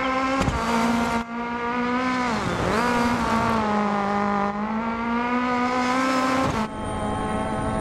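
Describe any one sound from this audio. A rally car engine roars loudly, its pitch dipping and rising as it shifts gears.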